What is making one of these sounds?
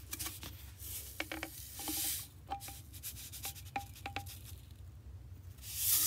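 Powder pours from a container into a measuring spoon.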